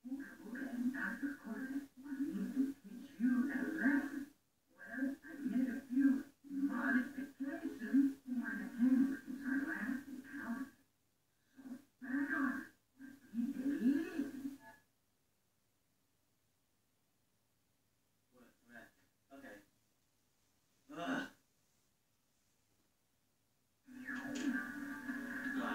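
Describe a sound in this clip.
Game music and effects play through a television loudspeaker.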